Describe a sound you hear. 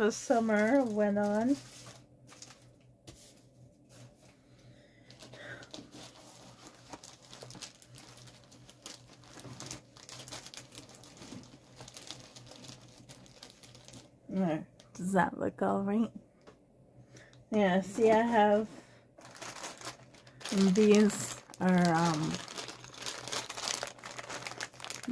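A plastic bag rustles and crinkles in a woman's hands.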